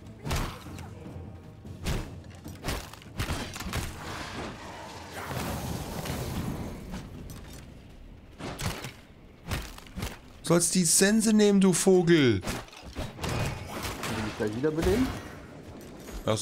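Sharp hits and thuds of a fight ring out in a game.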